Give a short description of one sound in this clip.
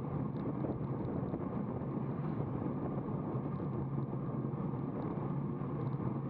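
Bicycle tyres hum on a smooth road.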